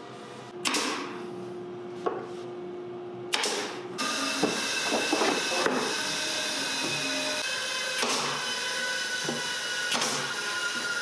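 A pneumatic nail gun fires nails into wood with sharp, hissing bangs.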